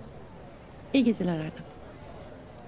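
A woman speaks softly.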